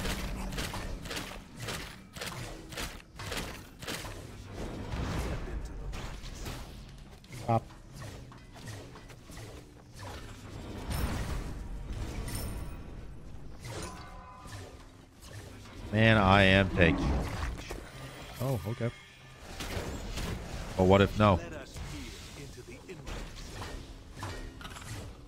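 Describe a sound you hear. Game combat effects clash and whoosh in quick bursts.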